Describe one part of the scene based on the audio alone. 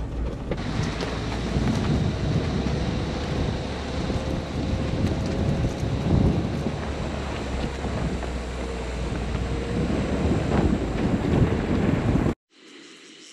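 Wind blows and buffets outdoors.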